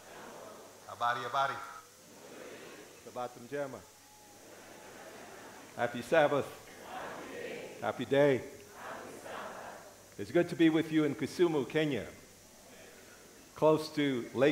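A middle-aged man speaks with animation through a microphone in a large hall, with pauses between phrases.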